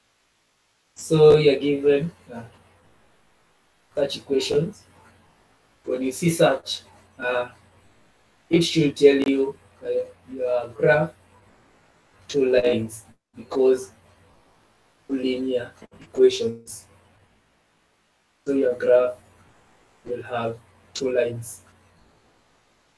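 A man explains slowly and calmly over an online call, pausing between phrases.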